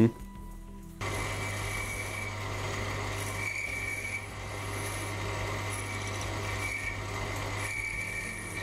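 A metal lathe hums steadily as a cutting tool shaves a spinning brass rod.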